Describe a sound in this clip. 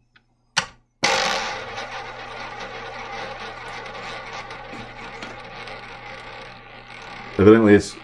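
A roulette ball rolls and rattles around a spinning wheel.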